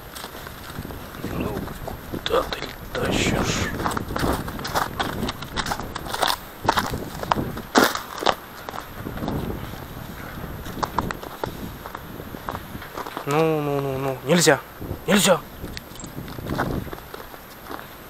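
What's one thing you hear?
Footsteps crunch steadily through snow outdoors.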